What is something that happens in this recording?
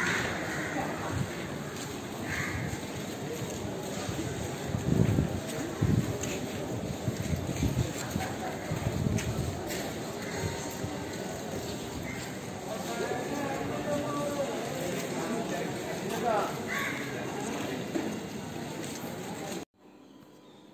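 A crowd of people murmurs softly outdoors.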